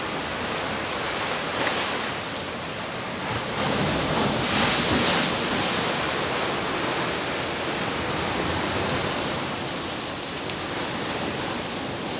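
Ocean waves wash and break steadily in the distance, swelling louder now and then.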